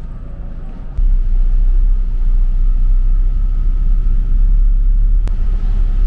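A bus engine idles with a deep, steady rumble.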